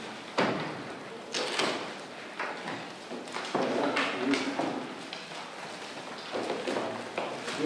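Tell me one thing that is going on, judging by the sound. Papers rustle as they are handled.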